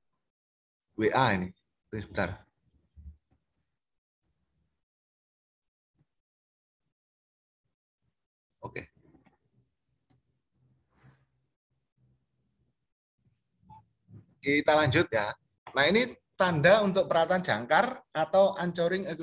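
A middle-aged man speaks calmly over an online call, in short bursts with long pauses.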